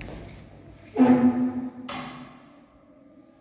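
A door bangs shut and rattles in an echoing stairwell.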